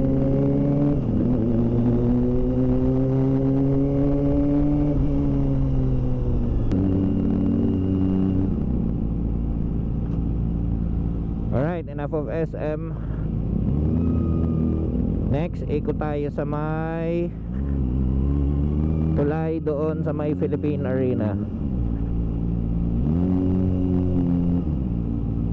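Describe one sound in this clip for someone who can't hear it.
A motorcycle engine hums close by, rising and falling in pitch as it speeds up and slows down.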